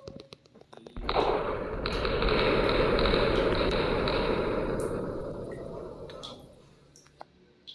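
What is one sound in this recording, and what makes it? A deep rumbling explosion swells and slowly fades.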